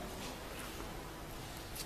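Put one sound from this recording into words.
Two women kiss cheeks with soft smacks.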